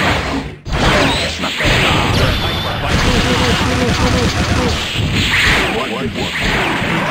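Video game fighting sounds blast and crash in quick bursts.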